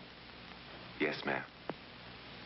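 A man speaks briefly.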